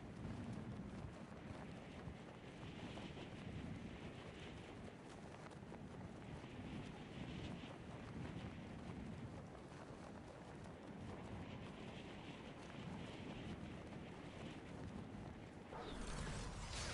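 Wind rushes steadily past a figure falling through the air.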